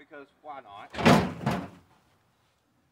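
A dirt bike thuds and clanks onto a metal truck bed.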